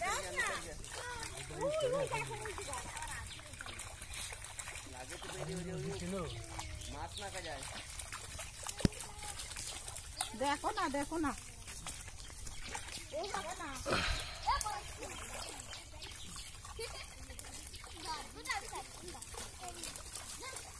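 Fish splash and thrash at the water's surface.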